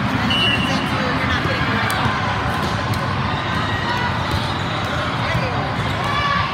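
Players' shoes squeak sharply on the court floor.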